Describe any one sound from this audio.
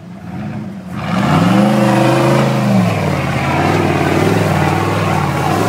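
A small engine revs loudly, its pitch rising and falling.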